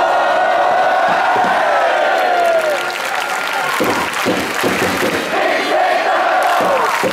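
A large crowd of fans chants loudly and in unison outdoors.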